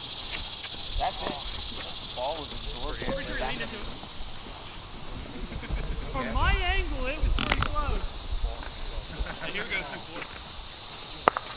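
Men call out to each other across an open outdoor field.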